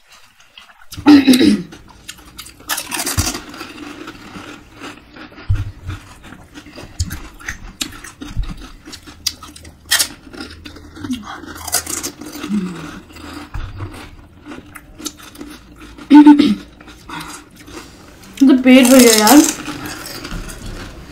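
Crisp hollow pastries crunch and crack with each bite.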